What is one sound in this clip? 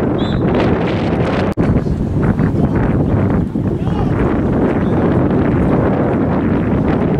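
Wind blows hard outdoors, rumbling across the microphone.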